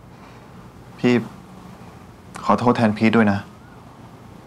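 A young man speaks in a low, serious voice, close by.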